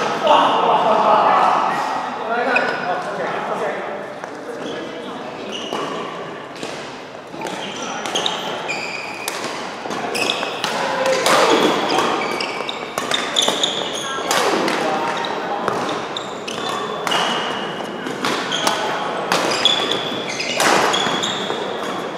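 Sports shoes squeak on a synthetic court floor.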